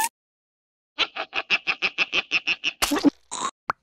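A cartoon creature laughs loudly in rapid bursts.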